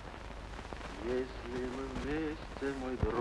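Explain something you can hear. A man sings softly.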